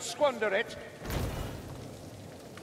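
A chest bursts open with a deep thud.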